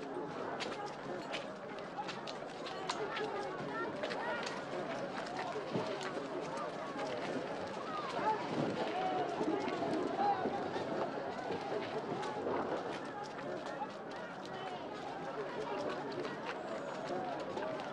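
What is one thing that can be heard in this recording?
A crowd of men chatter in the background.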